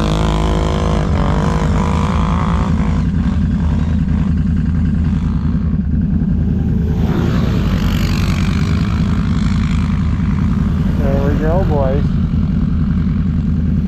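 Another snowmobile engine revs up and down nearby.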